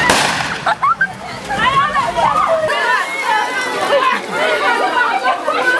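A crowd of men, women and children talk and call out excitedly close by.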